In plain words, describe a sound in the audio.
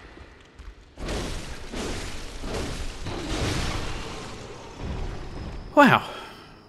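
Weapons slash and strike in a fierce fight.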